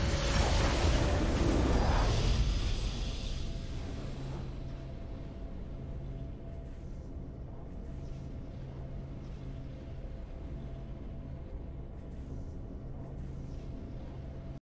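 A triumphant video game fanfare bursts out loudly and fades into soft, steady music.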